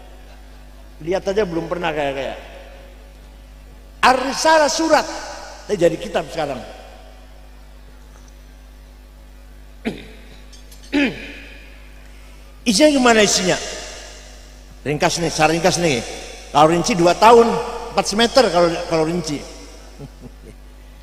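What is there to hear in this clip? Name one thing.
An elderly man speaks calmly into a close microphone, with pauses between phrases.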